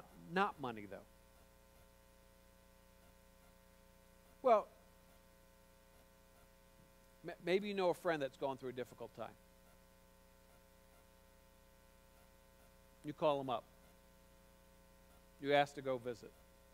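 A man speaks through a microphone in short phrases with long pauses, in a large echoing hall.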